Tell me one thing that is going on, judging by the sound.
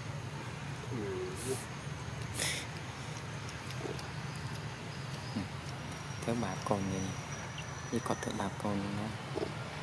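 A baby monkey squeals and chirps close by.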